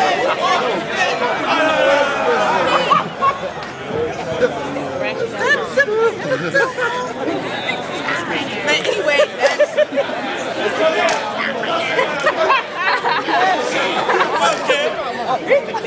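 A large crowd of young people cheers, shouts and chatters close by, outdoors.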